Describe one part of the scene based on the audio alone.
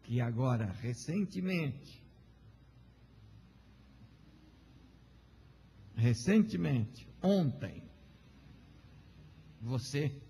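A middle-aged man speaks emphatically into a microphone, pausing between phrases.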